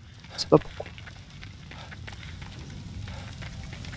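A fire crackles.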